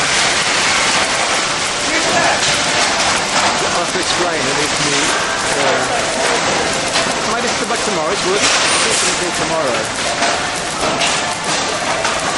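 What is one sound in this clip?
A conveyor rattles as it carries items along.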